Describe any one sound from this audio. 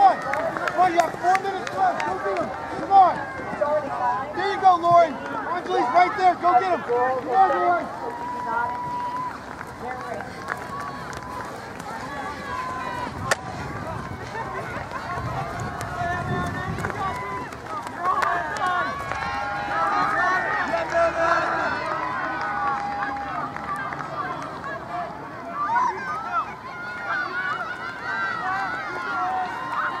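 Spectators shout and cheer encouragement outdoors.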